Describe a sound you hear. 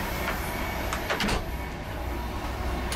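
A door handle clicks as a door latch turns.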